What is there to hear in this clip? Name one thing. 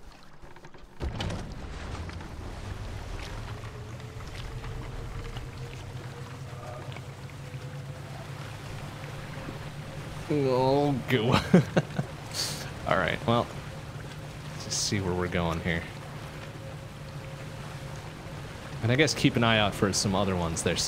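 A small boat's motor hums steadily as the boat moves across calm water.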